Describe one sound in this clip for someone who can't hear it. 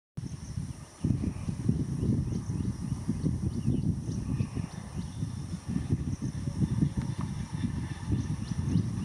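A distant train approaches slowly.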